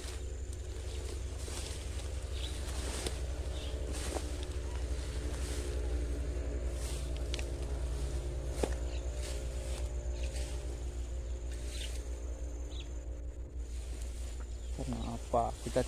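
Wind rustles through dense leaves outdoors.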